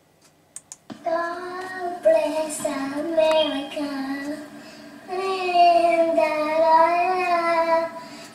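A young boy sings loudly and close by, in a high voice.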